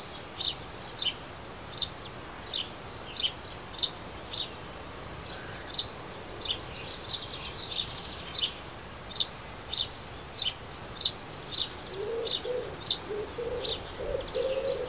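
A small bird chirps repeatedly, close by.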